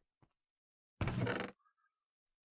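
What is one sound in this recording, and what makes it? A wooden chest creaks open in a game.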